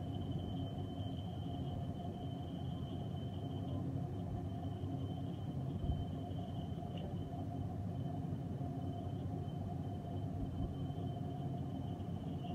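A cutting tool scrapes and whines against spinning metal.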